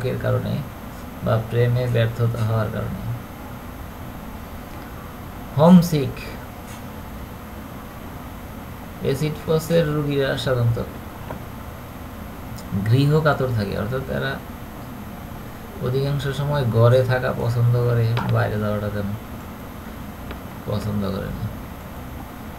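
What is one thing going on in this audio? A man speaks slowly and deliberately, in phrases with pauses, close to the microphone.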